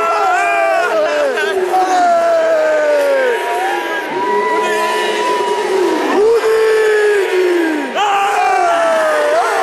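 A man shouts and cheers excitedly close by.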